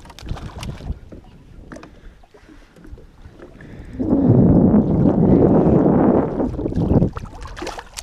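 A fish thrashes and splashes at the water's surface.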